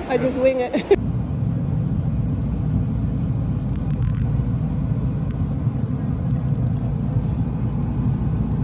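A subway train rumbles steadily along.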